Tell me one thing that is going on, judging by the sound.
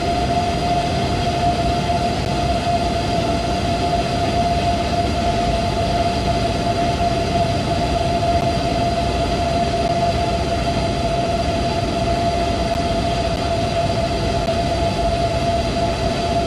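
An electric train hums steadily as it rolls along the tracks at speed.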